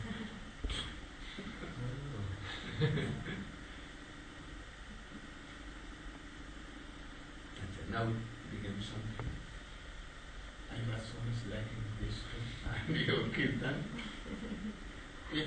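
An elderly man speaks calmly and slowly, with pauses.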